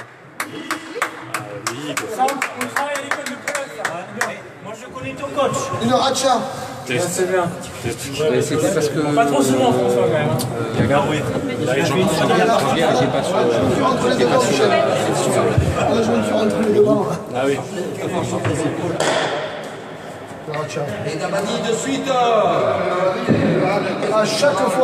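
A ball thuds against a wall, echoing in a large hall.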